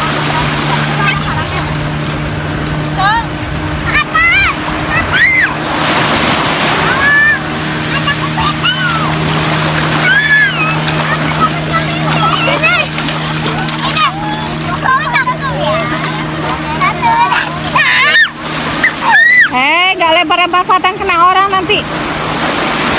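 Young children shout and squeal excitedly nearby.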